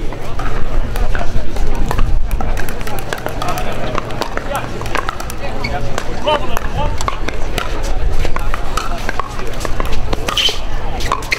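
Paddles strike a plastic ball with sharp pops.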